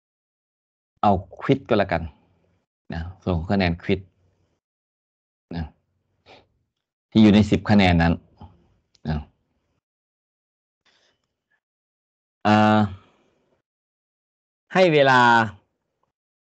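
An older man speaks calmly in short phrases through an online call, with pauses between them.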